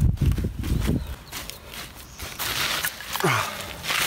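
A shovel scrapes and digs into gravelly soil.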